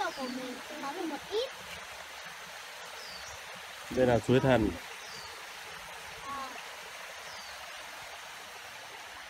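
A shallow stream trickles over rocks.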